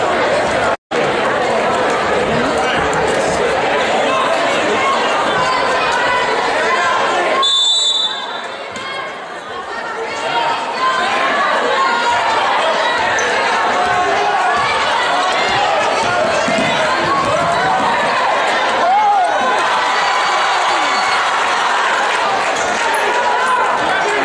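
A crowd chatters and cheers loudly in a large echoing gym.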